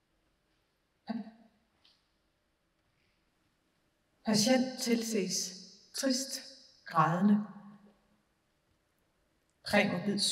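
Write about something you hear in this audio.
A woman speaks through a microphone in a large hall, with a slight echo.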